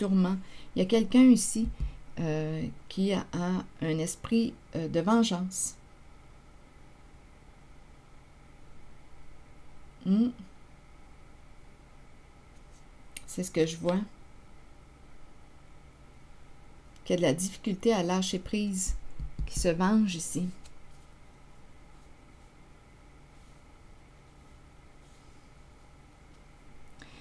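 Playing cards rustle and slap softly as they are shuffled and laid down.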